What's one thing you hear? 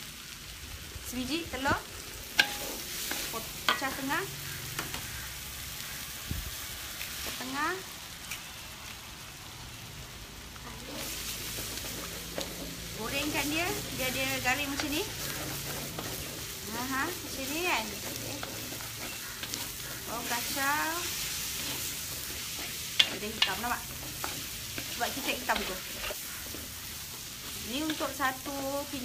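A spatula scrapes and clacks against a wok.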